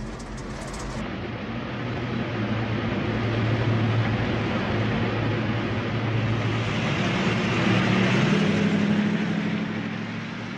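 A van drives past outdoors, its engine growing louder.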